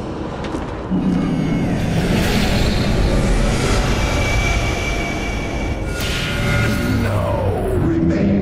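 A pulsing energy beam surges and roars loudly.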